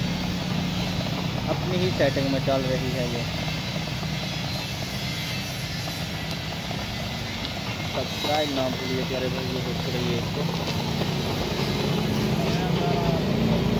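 A motor hums steadily as a machine drives the torch along.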